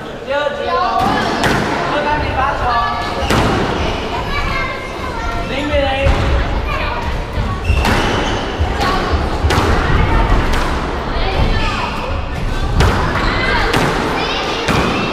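A squash ball smacks hard against walls and rackets.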